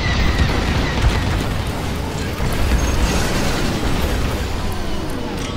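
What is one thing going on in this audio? Game explosions boom and rumble.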